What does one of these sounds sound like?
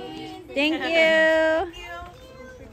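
A young girl calls out loudly in a high, sing-song voice close by.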